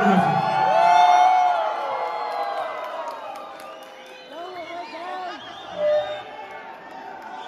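Cymbals shimmer and fade.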